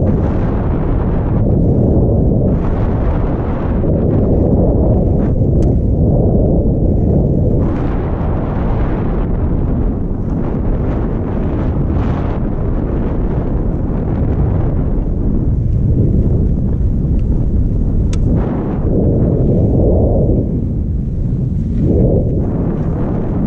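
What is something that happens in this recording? Skis hiss and scrape steadily over packed snow.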